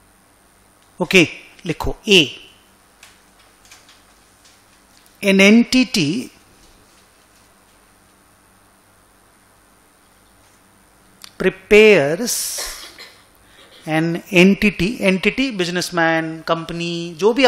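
A middle-aged man speaks into a microphone in short bursts, calmly explaining.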